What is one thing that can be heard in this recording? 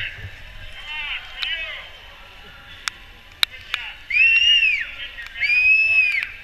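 A crowd of spectators cheers and shouts nearby.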